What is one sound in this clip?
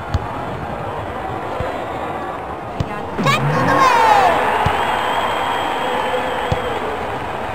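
A ball is kicked with a dull thud, now and then.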